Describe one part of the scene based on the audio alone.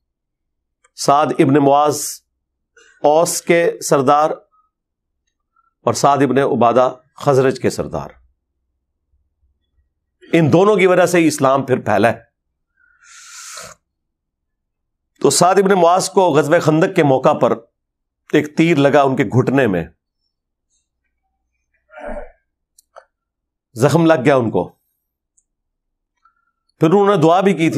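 A man speaks with emphasis into a close microphone, in short bursts with pauses.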